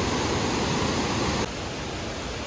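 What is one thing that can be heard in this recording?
A waterfall rushes and splashes nearby.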